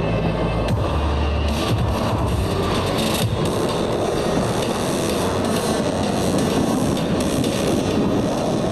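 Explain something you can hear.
Jet engines roar loudly overhead.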